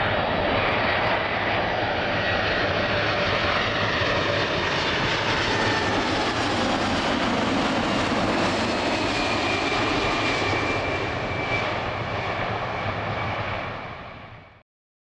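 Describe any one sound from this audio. Jet engines whine high and shrill.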